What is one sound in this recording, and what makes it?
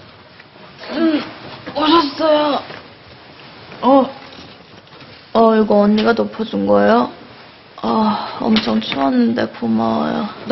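A young woman speaks groggily and sleepily.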